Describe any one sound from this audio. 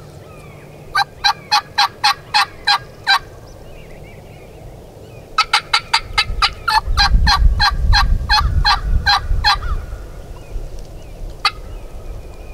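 A bird calls nearby in a series of quick, sharp, evenly spaced notes.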